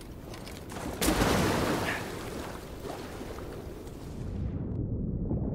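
Water splashes loudly as someone jumps in and swims.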